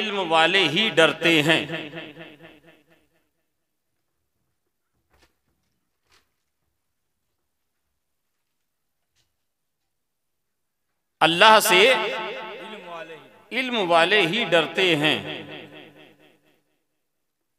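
A man chants melodically into a microphone, his voice echoing through loudspeakers.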